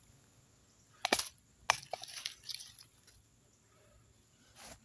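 Dry leaves rustle and crackle under a hand.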